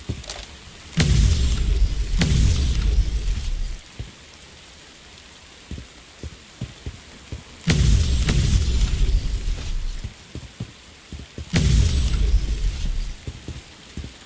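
Thunder cracks and rumbles loudly, then fades.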